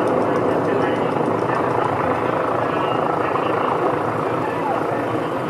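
Steady city traffic rumbles nearby.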